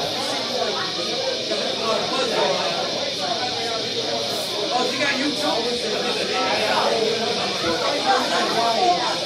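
A drum kit is played.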